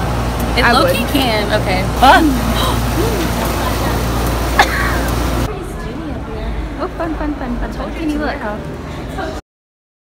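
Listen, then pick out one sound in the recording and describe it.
A young woman talks excitedly, close by.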